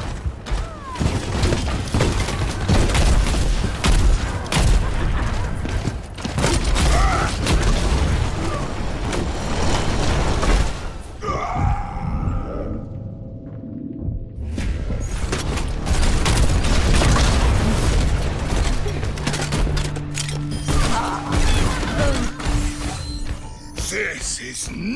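Heavy gunfire bursts in rapid cracks.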